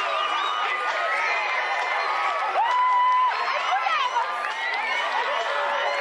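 Young people clap their hands.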